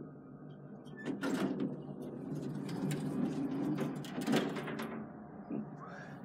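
Elevator doors slide open with a rumble.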